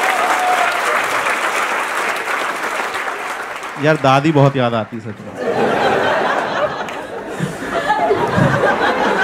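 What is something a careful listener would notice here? A crowd claps and laughs loudly.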